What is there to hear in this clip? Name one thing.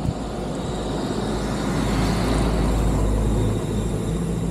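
A bus passes close by in the other direction.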